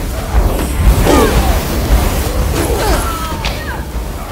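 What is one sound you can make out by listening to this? Creatures shriek and groan as they are struck.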